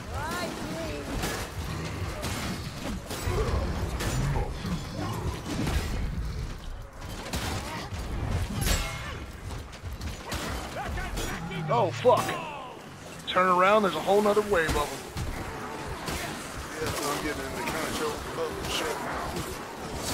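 Blades slash and thud in quick, heavy blows.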